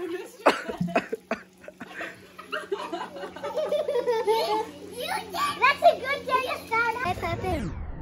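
Children shout and chatter outdoors.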